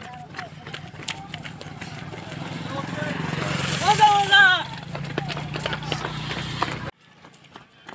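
A motorbike engine hums as it rides slowly past.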